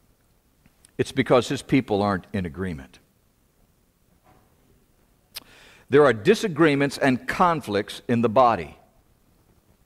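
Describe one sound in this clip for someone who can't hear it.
An elderly man speaks slowly and earnestly into a microphone, with pauses between phrases.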